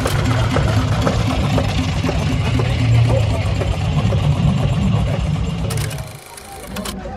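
An old stationary engine chugs steadily nearby.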